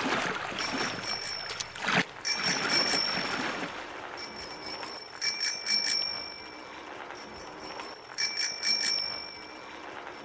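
Bright electronic chimes ring out in short, quick bursts.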